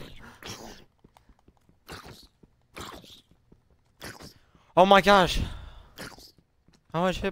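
Zombies groan low and hoarsely, again and again.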